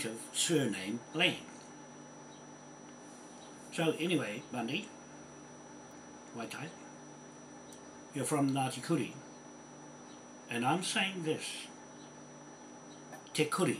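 An older man speaks calmly in short bursts with pauses, close by.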